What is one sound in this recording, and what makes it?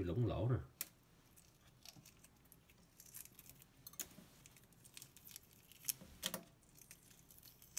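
Fingers peel a boiled egg, with eggshell softly cracking and crinkling.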